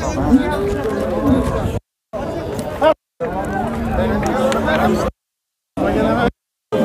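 A crowd of men talks loudly all around, outdoors.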